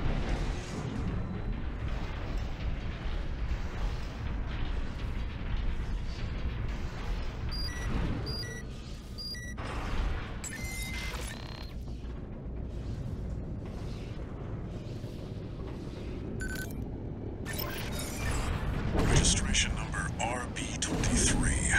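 A heavy mechanical walker thuds and whirs as it moves.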